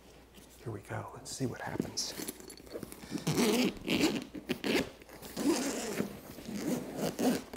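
A zipper is pulled open.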